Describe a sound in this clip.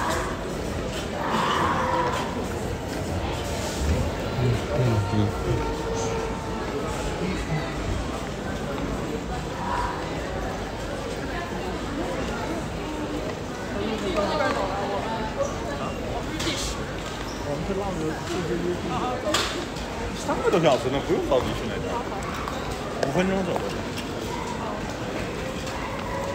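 Footsteps echo across a hard floor in a large hall.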